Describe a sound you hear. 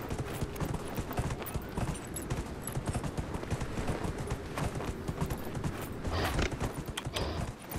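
Hooves pound steadily on sandy ground as a horse gallops.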